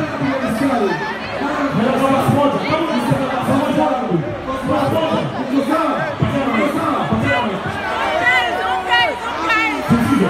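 A young man raps into a microphone, heard loud through speakers.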